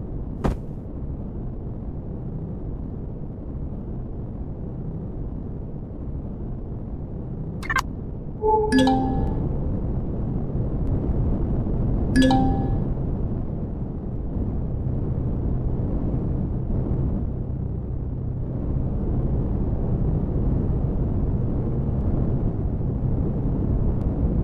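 A spaceship engine hums with a low, steady rumble.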